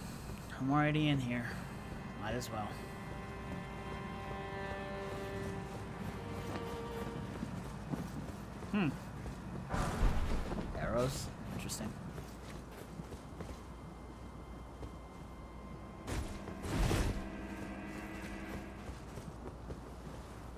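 Armoured footsteps run across stone.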